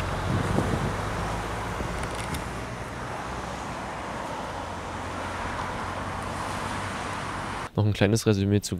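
A car drives slowly past, its tyres humming on the road.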